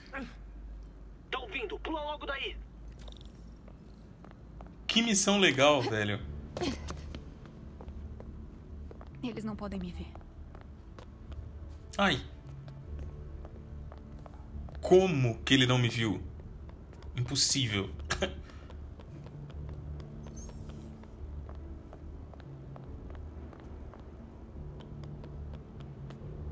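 Soft footsteps pad across a stone floor.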